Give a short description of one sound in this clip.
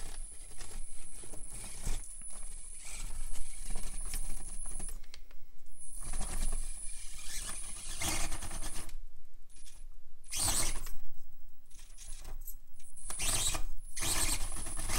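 Plastic tyres scrape and knock over rough concrete.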